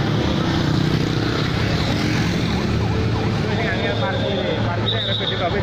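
A crowd chatters in the distance.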